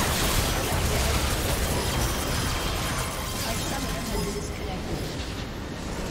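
A game battle clashes with spell blasts and impacts.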